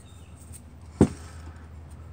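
A sharp metallic knock sounds once.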